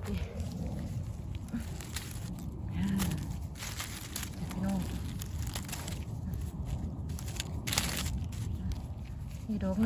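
Dry leaves rustle and crackle as a hand digs among them.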